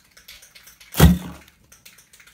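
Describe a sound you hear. A metal can drops into a plastic rubbish bag with a thud.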